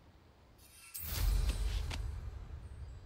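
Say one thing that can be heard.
A broom swoops through the air with a rushing whoosh.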